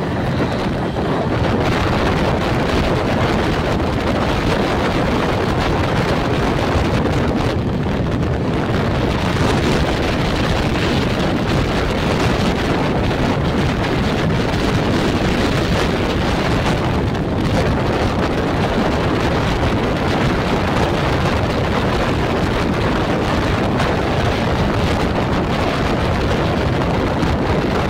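A train rattles and clatters steadily along the tracks.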